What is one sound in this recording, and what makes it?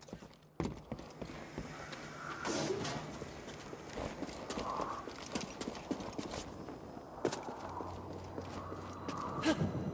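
Footsteps crunch on rock.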